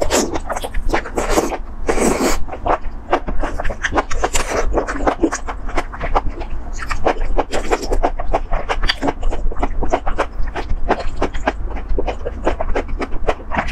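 A young woman chews food wetly and smacks her lips close to the microphone.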